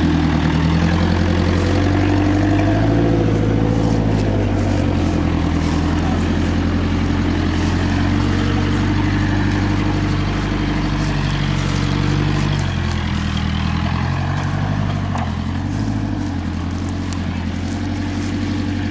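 A diesel engine rumbles close by and slowly moves away.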